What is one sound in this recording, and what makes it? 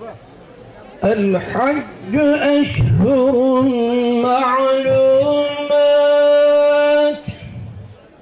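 A man chants loudly in a long, drawn-out voice through a loudspeaker.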